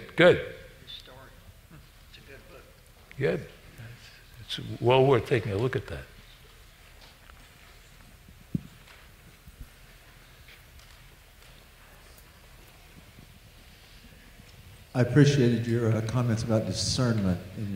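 An elderly man speaks calmly into a headset microphone, with long pauses.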